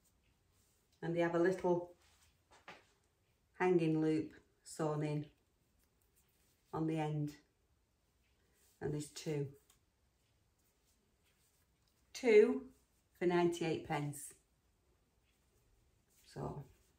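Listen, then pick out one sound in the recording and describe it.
An older woman talks calmly and close to a microphone, in short phrases with pauses.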